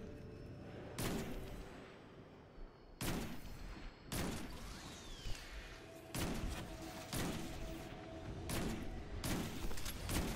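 Sniper rifle shots crack loudly, one at a time.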